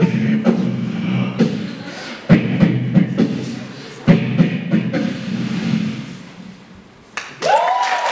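A young man sings loudly into a microphone.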